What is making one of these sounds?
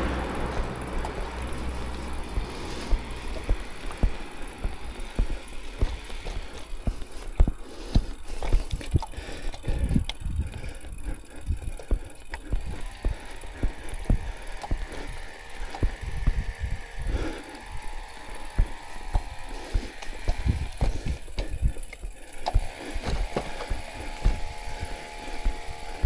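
A bicycle rattles and knocks over a bumpy road.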